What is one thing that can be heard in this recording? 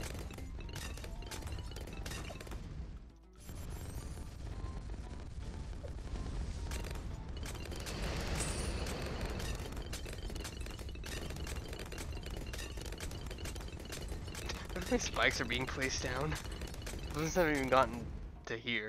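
Game sound effects pop and burst rapidly.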